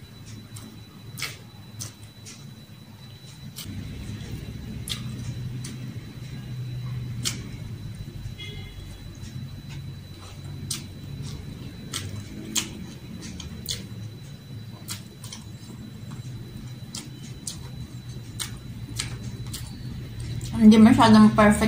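A young woman chews food and smacks her lips close by.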